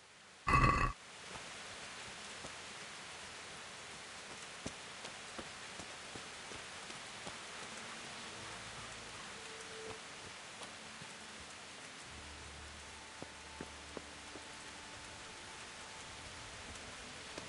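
Rain and wind hiss steadily outdoors.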